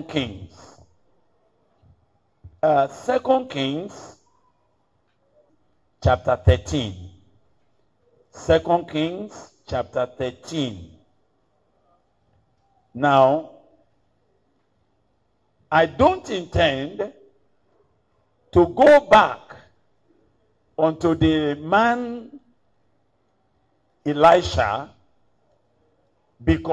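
An older man preaches with emphasis into a microphone, speaking in short bursts with pauses.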